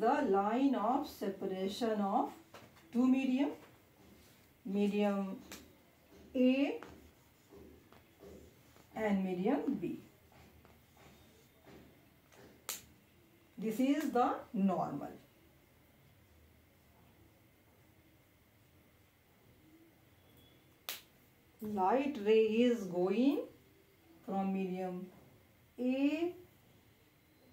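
A young woman speaks calmly nearby, pausing often.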